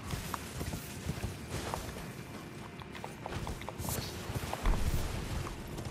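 A horse's hooves thud over rocky ground.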